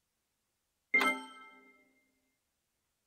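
A bright game chime rings once and fades away.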